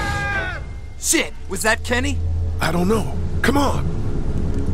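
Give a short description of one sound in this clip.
A second man speaks anxiously.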